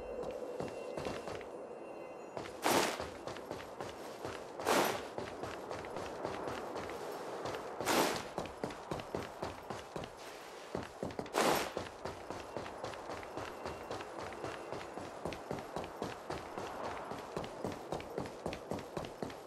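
Quick footsteps patter across a hard floor.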